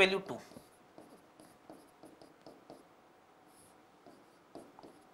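A marker squeaks on a whiteboard.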